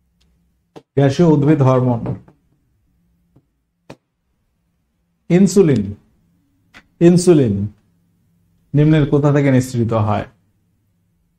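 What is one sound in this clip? A young man speaks with animation through a microphone, in short bursts.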